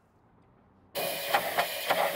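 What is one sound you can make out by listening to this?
Compressed air hisses loudly from an air nozzle.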